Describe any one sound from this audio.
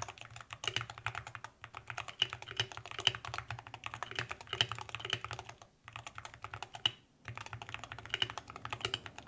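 Fingers type quickly on a mechanical keyboard, with rapid clacking keys.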